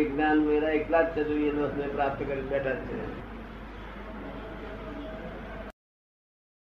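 An elderly man speaks with animation, heard through a microphone.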